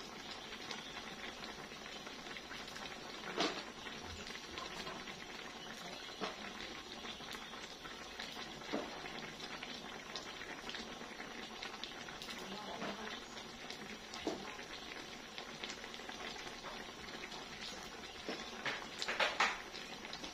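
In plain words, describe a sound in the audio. Food sizzles and crackles steadily in a hot frying pan.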